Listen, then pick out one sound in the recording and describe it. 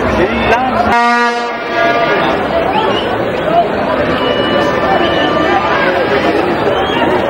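A large crowd chatters and cheers loudly in an open stadium.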